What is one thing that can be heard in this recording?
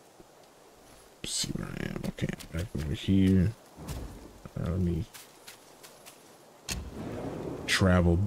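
Footsteps crunch on a leafy forest floor.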